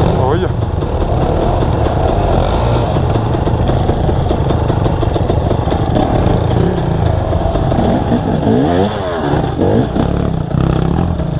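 Another dirt bike revs up the trail ahead.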